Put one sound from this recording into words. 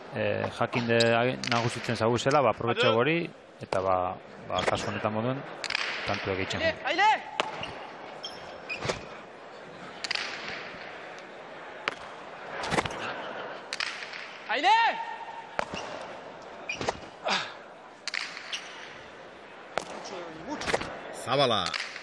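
A ball smacks hard against a wall in a large echoing hall.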